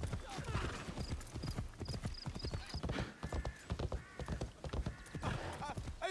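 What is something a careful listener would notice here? Horse hooves thud on a wooden bridge.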